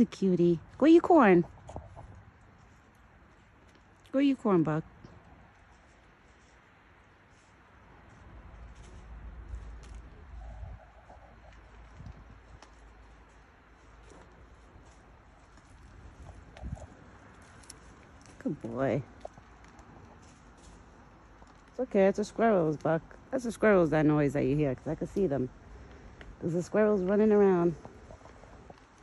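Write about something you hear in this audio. A deer rustles through dry leaves on the ground.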